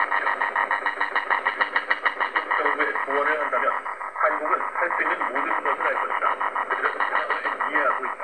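A small radio plays rhythmic music through a tinny speaker.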